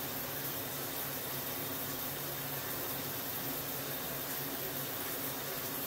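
Water runs steadily from a hose into a bathtub.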